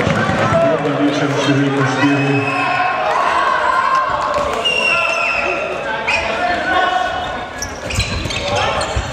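A crowd of spectators shouts and chants in a large echoing hall.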